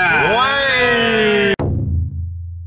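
Young men shout with excitement close by.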